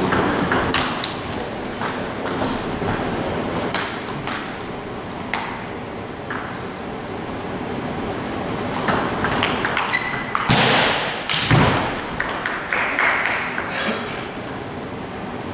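A table tennis ball clicks back and forth on paddles and the table in a large echoing hall.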